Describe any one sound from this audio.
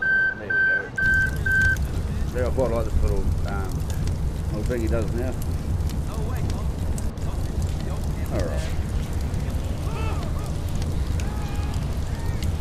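A large fire roars loudly.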